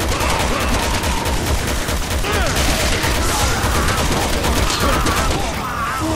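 A pistol fires shot after shot in quick bursts.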